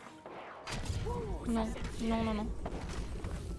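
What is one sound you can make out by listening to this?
A young woman speaks through a headset microphone.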